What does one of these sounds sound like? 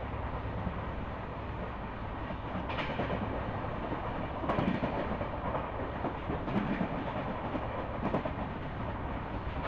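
Wind rushes past an open train door.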